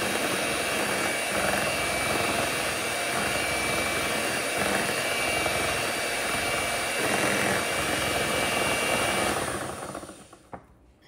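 An electric hand mixer whirs steadily, beating batter.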